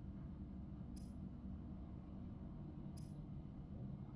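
Short bright interface clicks sound now and then.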